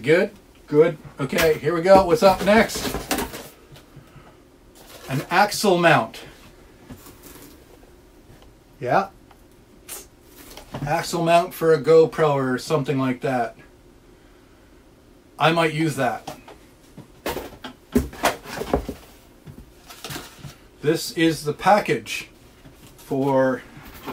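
Cardboard and plastic packaging rustle and crinkle.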